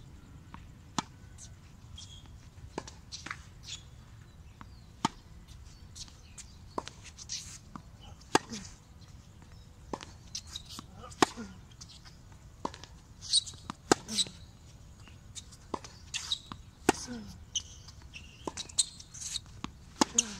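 A tennis racket strikes a ball with sharp pops, again and again.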